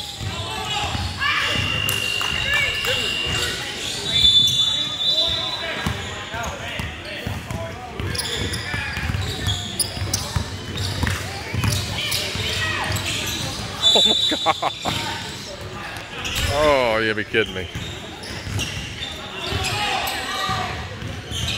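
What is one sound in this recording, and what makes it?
Young players shout and call out across a large echoing gym.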